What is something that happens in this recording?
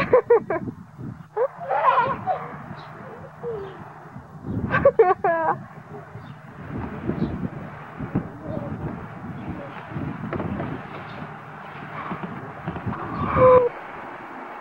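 A young child squeals and babbles nearby.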